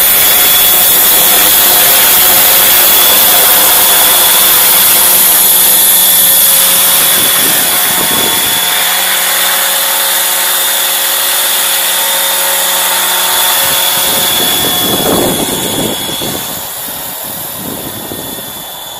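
A model helicopter's engine whines loudly as it hovers close by and then flies off into the distance.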